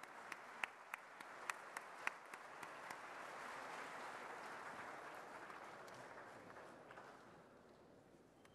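A large crowd applauds in an echoing hall, then the applause fades.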